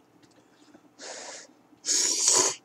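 A person slurps noodles loudly up close.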